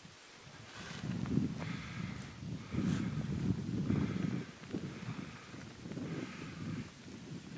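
Wind gusts outdoors and buffets the microphone in low rumbling bursts.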